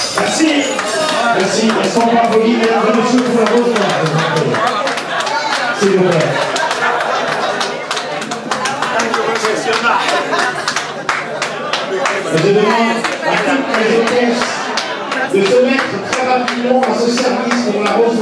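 Women chatter and cheer close by.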